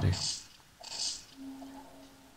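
A metal pipe strikes a body with heavy thuds.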